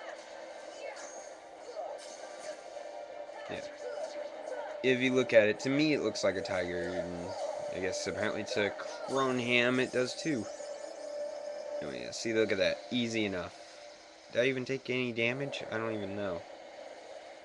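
Video game sword slashes and magic effects ring out.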